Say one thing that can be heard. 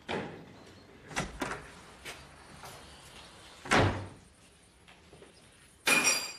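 A door opens and bangs shut.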